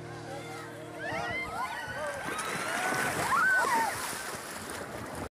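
Men shout excitedly outdoors.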